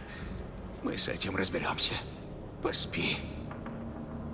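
A man speaks softly and calmly.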